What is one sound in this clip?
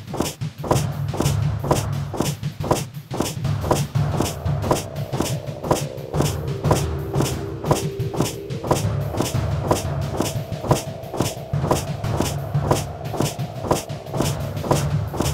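Footsteps thud steadily on stone steps.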